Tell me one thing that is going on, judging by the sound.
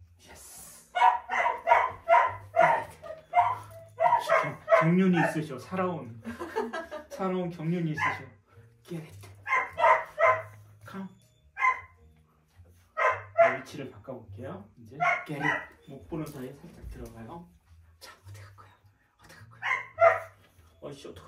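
A small dog barks sharply in quick bursts.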